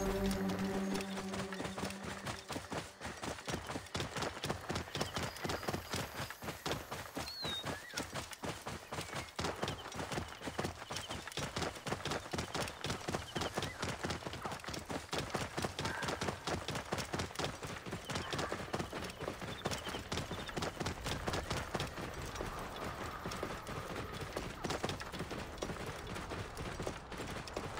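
Hooves thud quickly and steadily on dry ground as a camel runs.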